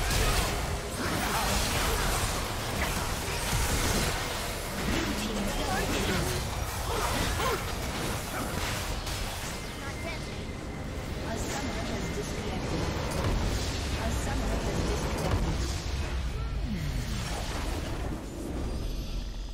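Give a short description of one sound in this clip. Game spell effects and impacts crash and whoosh in a busy fight.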